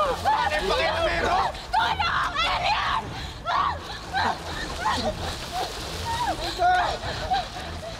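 A young woman cries out and sobs.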